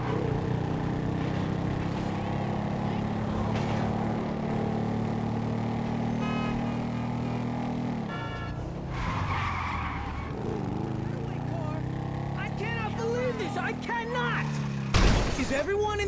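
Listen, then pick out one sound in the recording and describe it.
A motorcycle engine hums steadily, rising and falling as it speeds along.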